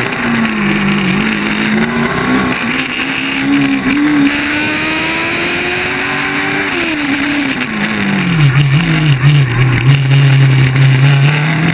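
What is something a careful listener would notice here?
A race car engine roars close by, its pitch rising and then dropping as it slows.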